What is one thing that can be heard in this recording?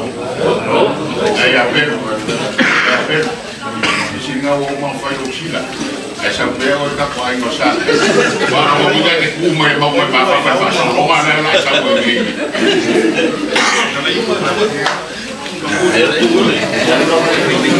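A man speaks aloud to a gathering.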